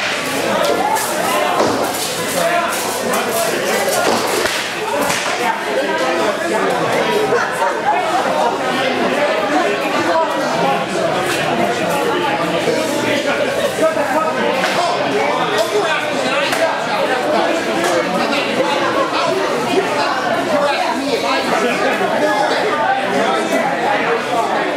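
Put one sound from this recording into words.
Swords clash and clatter as fighters spar.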